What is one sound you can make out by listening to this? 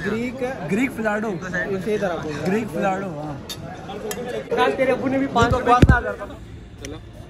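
Young men talk and laugh loudly nearby.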